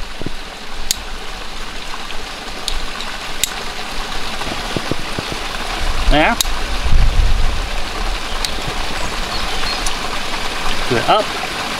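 A metal carabiner clicks.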